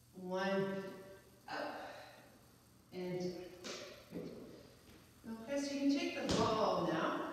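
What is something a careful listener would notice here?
An exercise ball thumps against hands.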